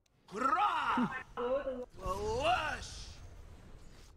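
Fantasy battle sound effects whoosh and crackle in a game.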